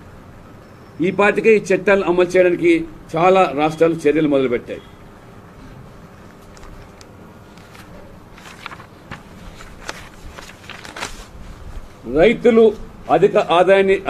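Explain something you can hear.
A man speaks into a microphone, reading out in a steady, formal voice.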